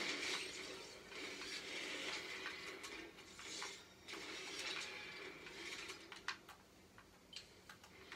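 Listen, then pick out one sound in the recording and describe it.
Video game sounds and gunfire play from a television speaker.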